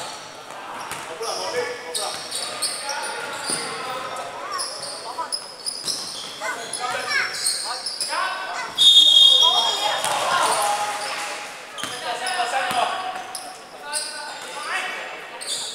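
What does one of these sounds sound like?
A basketball bounces with echoing thuds in a large hall.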